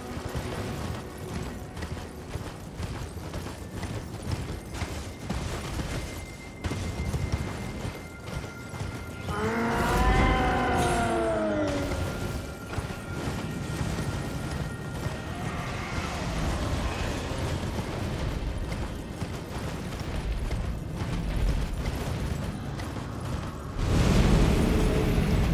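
A horse gallops with steady thudding hoofbeats on snow.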